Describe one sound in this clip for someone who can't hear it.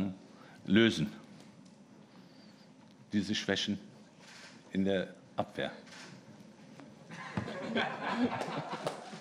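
A young man speaks into a microphone in short, cheerful bursts.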